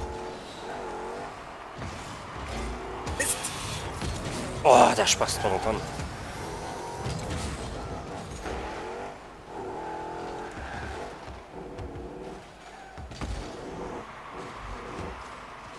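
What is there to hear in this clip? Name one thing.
A racing car's engine hums and revs.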